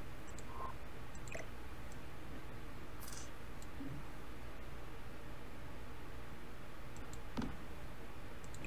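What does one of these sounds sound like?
Short interface clicks and soft placement chimes sound now and then.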